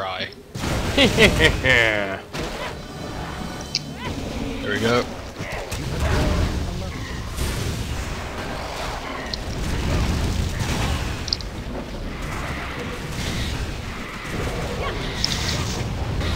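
Blows strike and shatter enemies.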